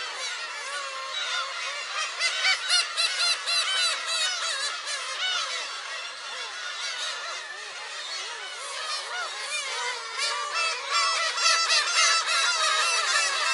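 A large flock of gulls calls and squawks loudly all around.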